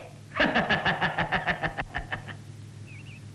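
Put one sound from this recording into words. A young man laughs loudly in rapid bursts.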